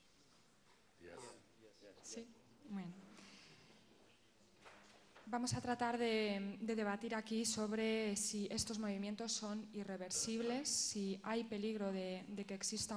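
A woman speaks steadily through a microphone in a large hall.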